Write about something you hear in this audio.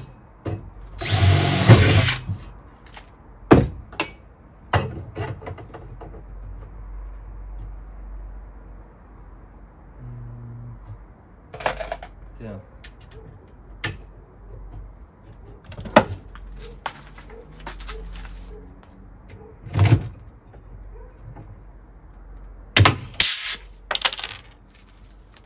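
A power drill whirs in short bursts.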